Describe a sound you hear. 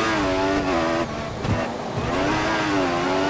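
A racing car engine drops in pitch briefly as the car brakes and downshifts.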